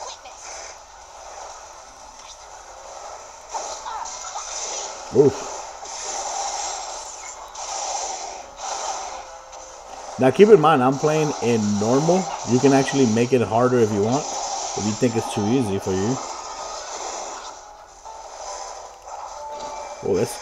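Fighting sound effects clash and whoosh from a handheld game's small speaker.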